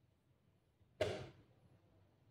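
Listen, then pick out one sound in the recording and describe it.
A hand taps a chess clock button with a sharp click.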